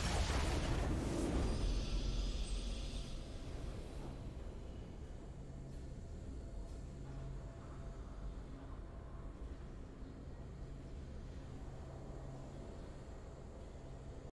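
Triumphant game music plays softly.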